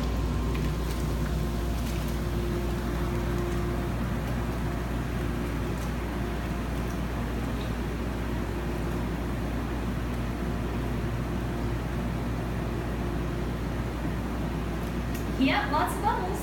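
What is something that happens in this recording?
A jet pump motor hums low and steady.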